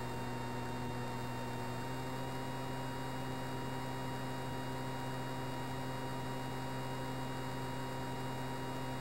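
A jet engine drones steadily with a constant hum.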